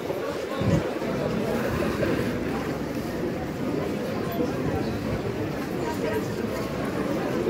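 A crowd of people murmurs and chatters nearby outdoors.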